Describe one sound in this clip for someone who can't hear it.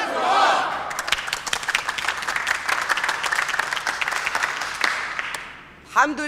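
A crowd claps hands in a fast, steady rhythm.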